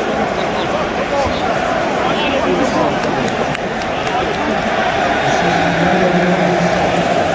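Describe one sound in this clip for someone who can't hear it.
A large stadium crowd roars and chatters all around.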